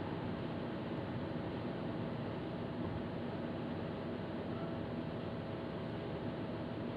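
Tyres rumble steadily on a road.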